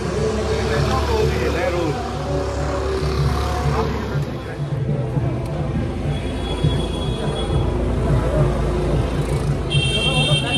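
A crowd murmurs in a busy street outdoors.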